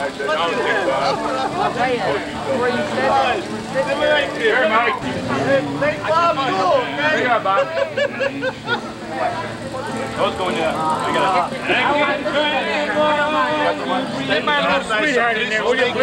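A middle-aged man talks and laughs loudly close by.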